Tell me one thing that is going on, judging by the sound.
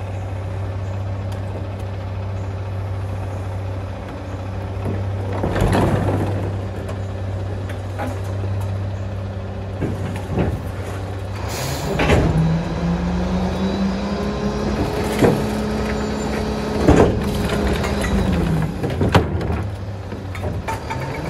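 A garbage truck engine idles with a steady low rumble.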